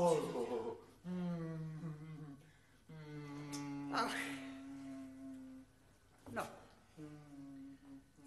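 A middle-aged woman sings slowly and mournfully close by.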